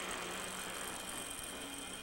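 A bicycle rolls past on a paved road.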